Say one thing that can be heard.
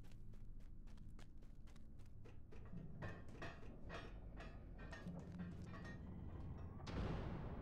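Footsteps tap quickly on a hard stone floor.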